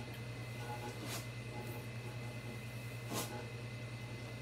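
A hairbrush swishes through long hair.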